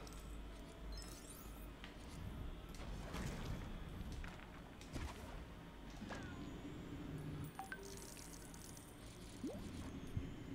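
Small coins jingle and chime as they are collected.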